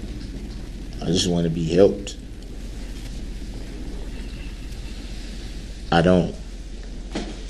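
An adult man speaks in short bursts.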